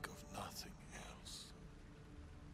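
A man speaks quietly and sadly, close by.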